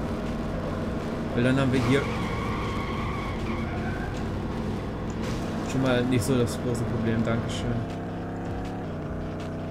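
A racing car engine roars steadily, rising and falling in pitch as it speeds up and slows down.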